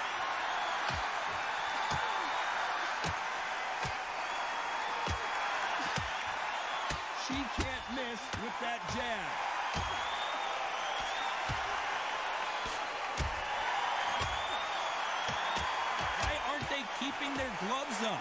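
Boxing gloves thud as punches land.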